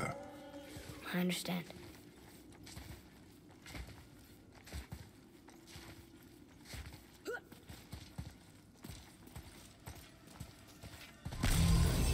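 Footsteps scrape and thud on stone.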